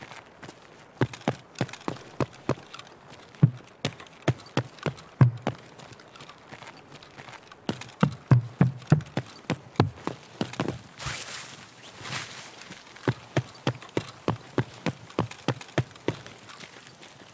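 Footsteps thud quickly and steadily on a hard floor.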